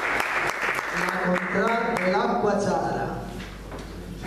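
A group of men sing a held chord together in an echoing room.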